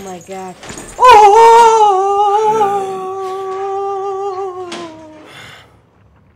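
A young woman screams loudly and long into a close microphone.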